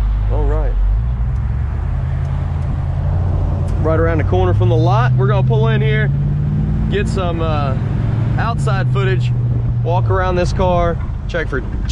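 A car engine revs and rises in pitch as the car pulls away.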